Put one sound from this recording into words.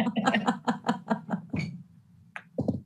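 A woman laughs heartily over an online call.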